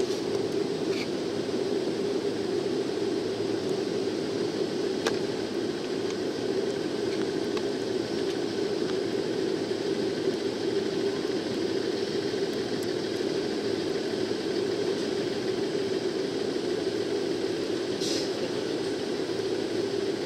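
A diesel train rumbles slowly toward the platform.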